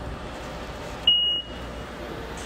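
A fare gate card reader beeps once.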